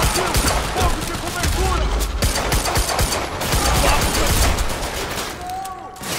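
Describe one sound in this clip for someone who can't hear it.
Pistol shots fire in rapid bursts, echoing in a large concrete hall.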